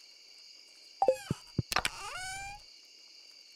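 A wooden chest in a game creaks open.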